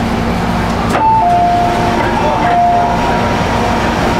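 A door warning chime beeps several times.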